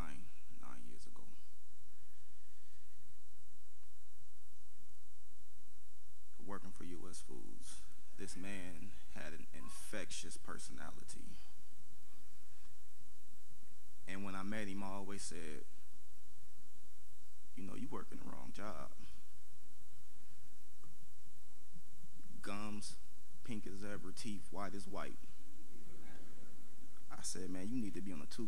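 A man speaks slowly and with feeling into a microphone, with long pauses.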